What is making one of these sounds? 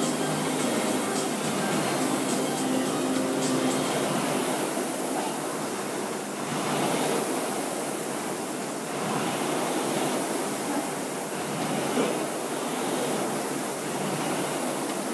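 Several air-resistance rowing machines whir as their flywheels spin.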